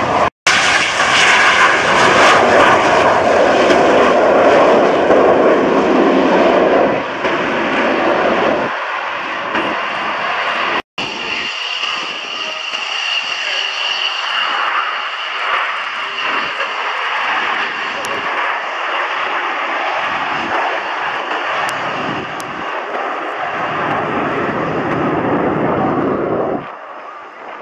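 Jet engines roar loudly overhead, then fade into the distance.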